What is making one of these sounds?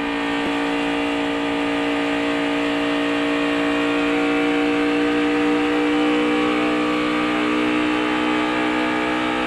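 Road and wind noise rush through the car's cabin.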